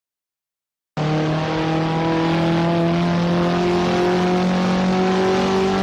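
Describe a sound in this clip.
A small car's engine hums steadily in a racing game, holding a high pitch.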